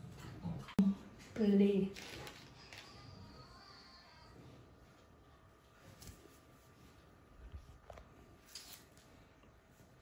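Small candles are pushed softly into a cake.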